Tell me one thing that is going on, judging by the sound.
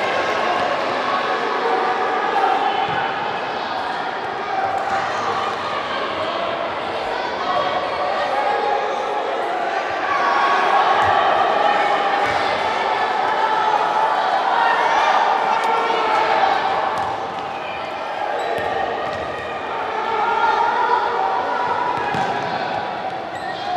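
Spectators shout and cheer loudly in a large echoing hall.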